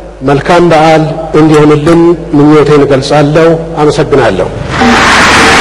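A man speaks calmly into a microphone, echoing through a large hall.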